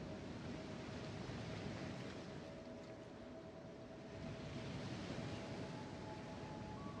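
Water rushes and splashes against a ship's hull.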